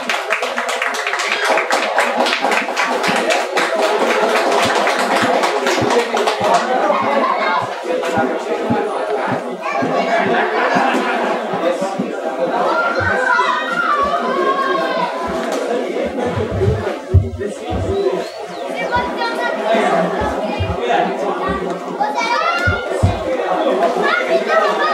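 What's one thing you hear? A live band plays an upbeat tune in a room.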